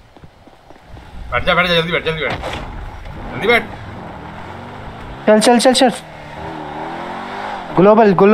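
A car engine starts and revs as the car drives off.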